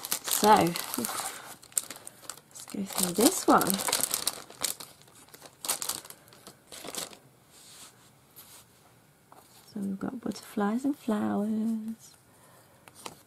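Paper and plastic rustle and crinkle as they are handled.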